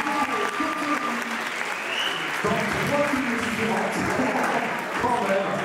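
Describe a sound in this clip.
A young man talks with animation through a microphone, echoing in a large hall.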